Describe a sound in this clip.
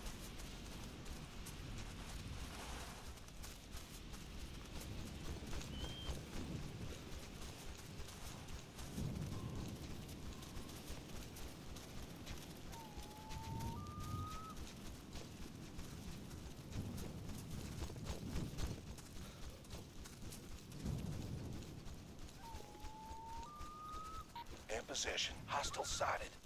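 Footsteps rustle through dense brush and grass.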